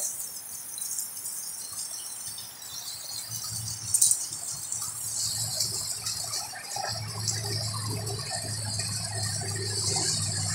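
Dogs scuffle and rustle through leafy plants close by.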